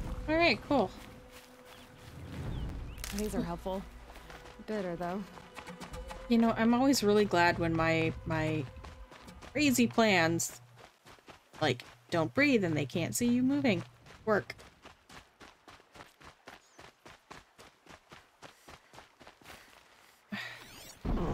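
Footsteps run quickly over dry grass and gravel.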